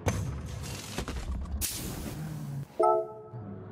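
A pneumatic wrench rattles in quick bursts.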